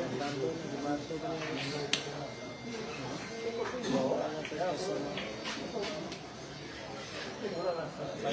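A crowd of men and boys chatter nearby.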